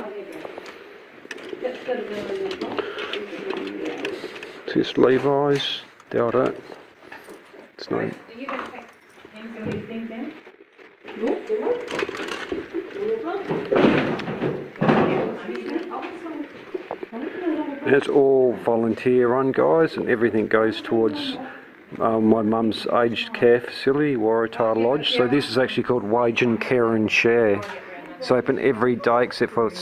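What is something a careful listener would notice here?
Hangers clack and scrape along a rail.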